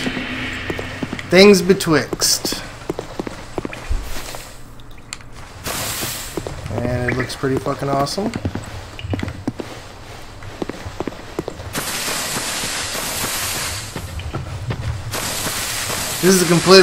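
Footsteps crunch and rustle through grass.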